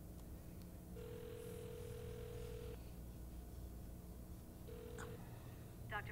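A phone ring tone sounds in long, steady buzzes.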